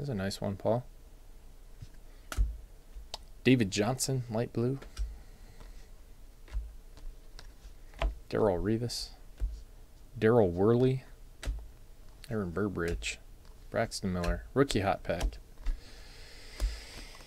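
Stiff cards are shuffled and flicked softly by hand.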